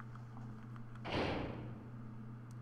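A heavy metal door slides open with a whoosh.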